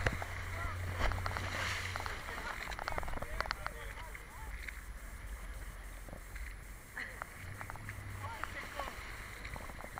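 Choppy water slaps and splashes close by.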